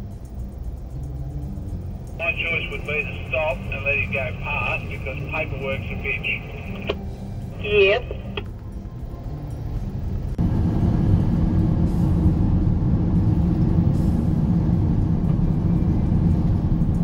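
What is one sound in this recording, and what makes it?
A vehicle engine rumbles steadily from inside the cab, growing louder partway through.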